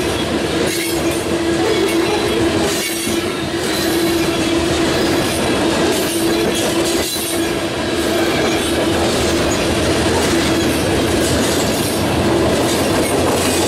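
A freight train rumbles past close by, its wheels clacking over rail joints.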